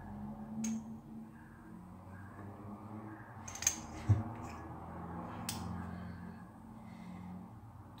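A metal safety razor clicks as it is handled.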